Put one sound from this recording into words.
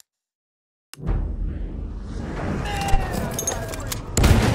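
Distant explosions rumble and boom.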